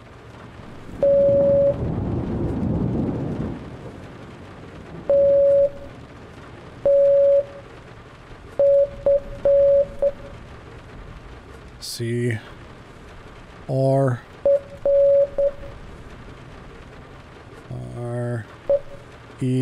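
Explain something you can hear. Short and long electronic morse beeps sound in sequence.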